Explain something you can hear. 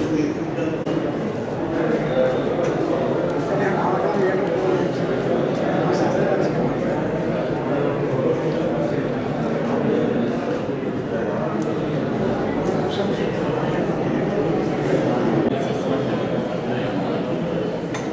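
An elderly man speaks.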